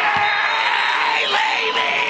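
A young man shouts with excitement close by.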